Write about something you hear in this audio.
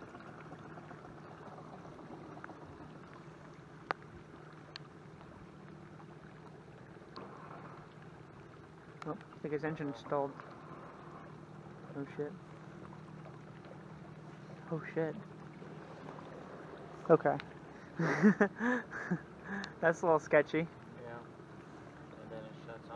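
A small outboard motor hums steadily.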